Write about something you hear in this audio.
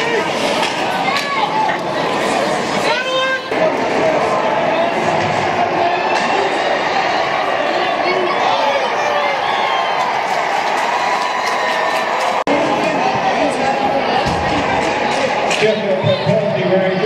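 A crowd of spectators cheers and shouts in a large echoing rink.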